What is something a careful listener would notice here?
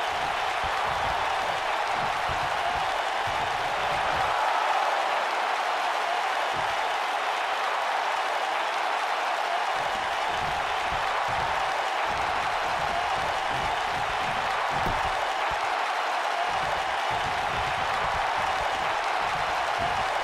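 A large crowd cheers and roars steadily throughout.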